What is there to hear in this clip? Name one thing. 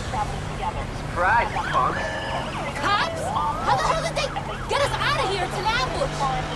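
Police sirens wail close by.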